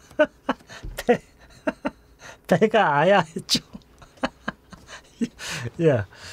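A middle-aged man laughs.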